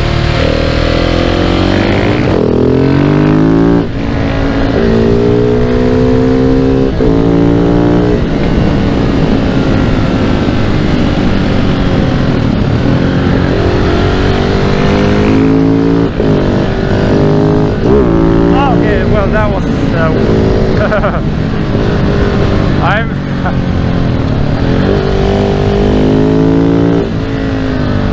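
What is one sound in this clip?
A single-cylinder four-stroke supermoto engine accelerates and shifts up through the gears.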